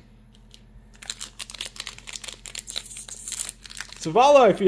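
A plastic foil wrapper crinkles and rustles.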